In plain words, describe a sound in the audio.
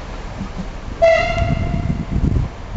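A train horn sounds briefly in the distance.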